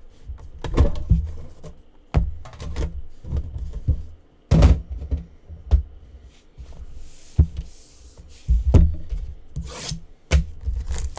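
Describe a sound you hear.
Hands shuffle and tap cardboard boxes on a table with soft knocks and scrapes.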